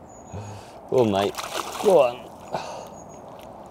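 Water splashes as a fish thrashes.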